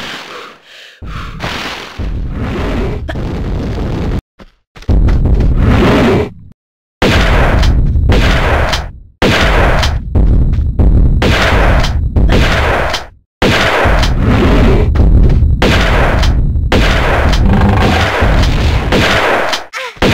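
A large creature roars loudly in repeated bursts.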